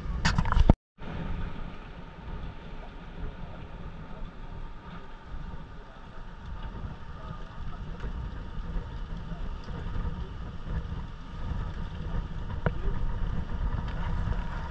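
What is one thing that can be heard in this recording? Sea water laps gently below.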